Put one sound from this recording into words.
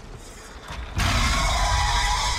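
A large beast roars loudly.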